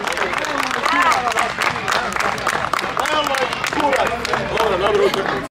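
A crowd claps steadily outdoors.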